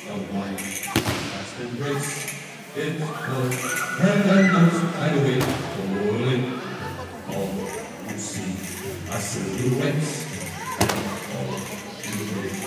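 Bodies thud heavily onto a padded mat in a large echoing hall.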